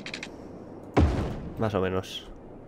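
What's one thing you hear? A young man speaks briefly into a microphone, close up.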